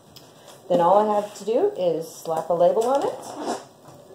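A cardboard box slides and scrapes on a table.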